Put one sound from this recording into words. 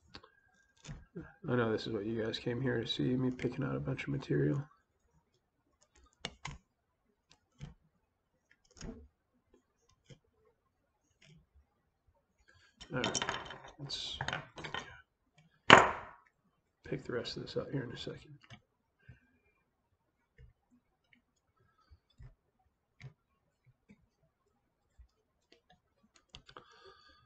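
Small tools click and tap softly.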